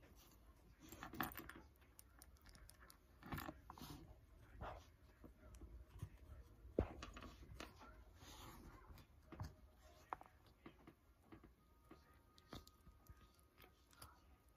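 Hands squish and squeeze soft slime up close, with crackling pops.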